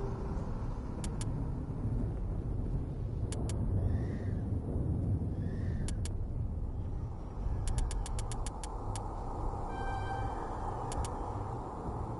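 Soft electronic menu clicks sound repeatedly.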